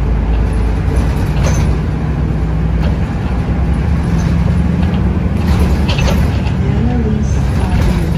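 Strong wind blows and rumbles outdoors.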